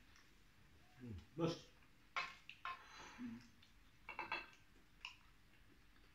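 Two men chew food noisily and smack their lips close up.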